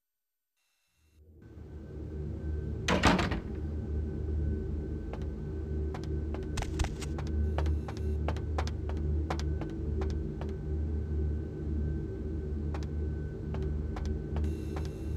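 A low, steady hum drones through an echoing hall.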